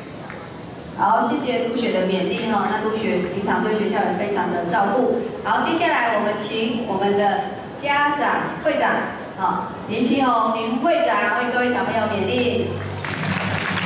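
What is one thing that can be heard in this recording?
A young woman speaks with animation through a microphone over loudspeakers.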